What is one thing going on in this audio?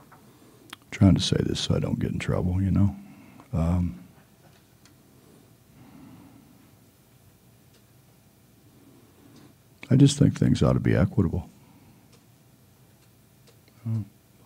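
An older man speaks calmly into a microphone, in short bursts with pauses.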